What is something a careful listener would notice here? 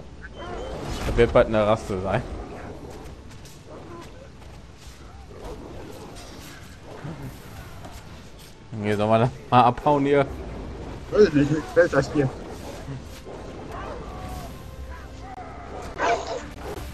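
Magic spells whoosh and burst in a fight.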